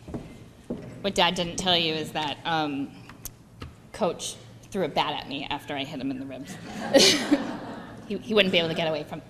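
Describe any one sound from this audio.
A woman speaks into a microphone in a large room.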